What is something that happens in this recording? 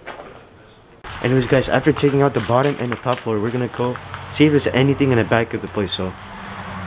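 A young man talks loudly close by.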